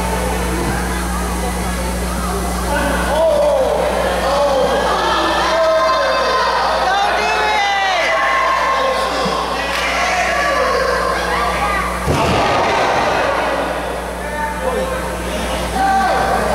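A crowd shouts and cheers in an echoing hall.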